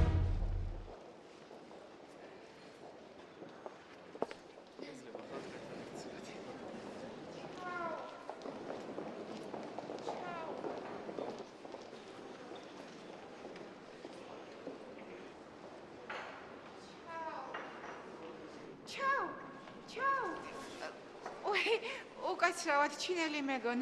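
A crowd murmurs softly in a large echoing hall.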